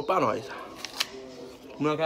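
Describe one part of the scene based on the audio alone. A young man bites into an apple with a crunch.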